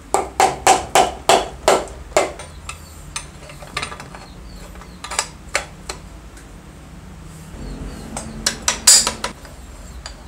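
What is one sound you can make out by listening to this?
A rubber mallet taps repeatedly on metal.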